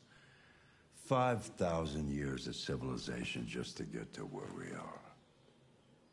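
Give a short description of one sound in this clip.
An elderly man speaks calmly and thoughtfully, close by.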